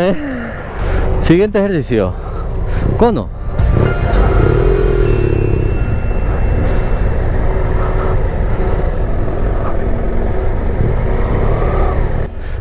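A motorcycle engine rumbles and revs up close.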